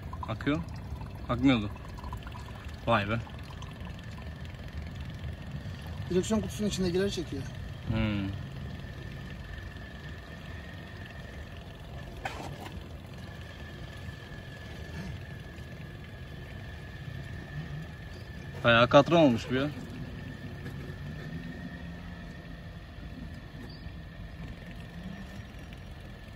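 A small electric pump hums steadily.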